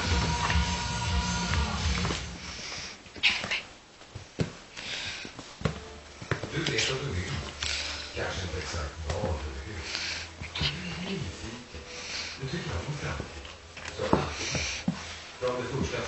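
A small puppy growls and yaps playfully.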